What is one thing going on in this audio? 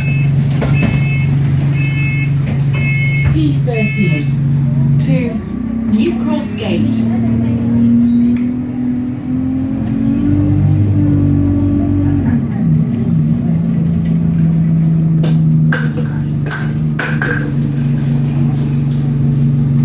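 A bus engine hums steadily inside the cabin.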